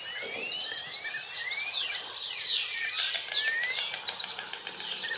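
Birds call with rolling, liquid chirps, close by and overlapping.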